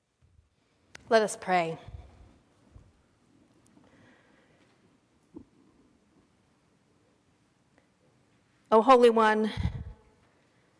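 A woman speaks calmly into a microphone in an echoing room.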